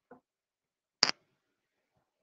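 A knock sounds as a headset microphone is handled.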